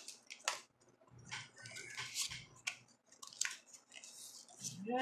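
Trading cards rustle and flick as hands handle them.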